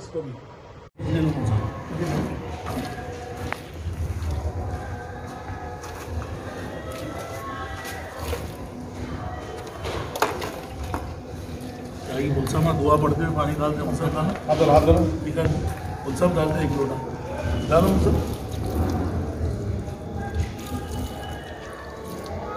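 Men talk nearby in a group.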